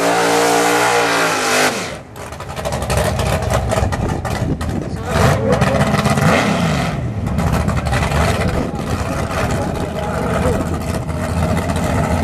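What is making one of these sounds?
Tyres screech as they spin on the track.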